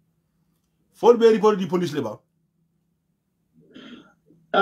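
A young man speaks close up, in a calm voice.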